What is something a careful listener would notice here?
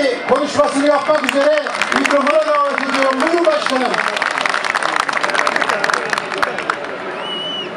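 People clap their hands in applause.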